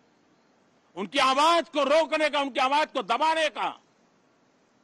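An elderly man speaks firmly into a microphone.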